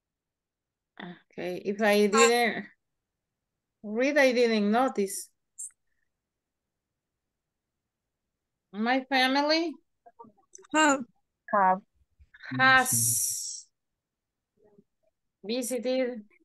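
A woman speaks calmly through an online call.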